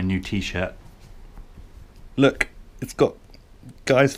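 Cloth rustles as a shirt is pulled and handled.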